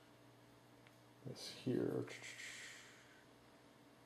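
Fingers handle and turn over a small plastic box with a soft rustle.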